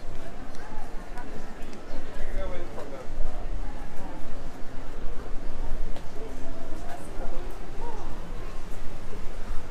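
Young adults chat quietly nearby while walking.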